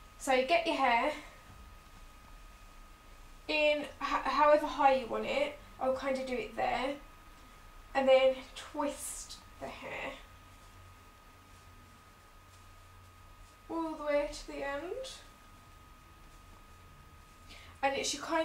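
A young woman talks calmly close by, in short bursts.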